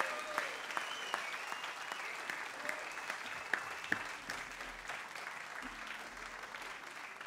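A fiddle plays a melody.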